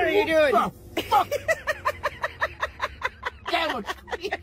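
An elderly man laughs loudly.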